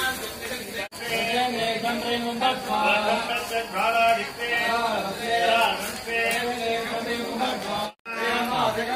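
A crowd of men and women chant together in song.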